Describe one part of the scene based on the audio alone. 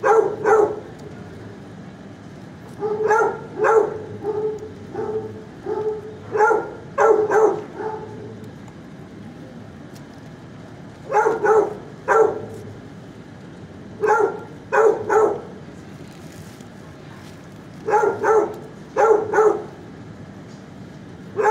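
A dog barks loudly close by in short bursts.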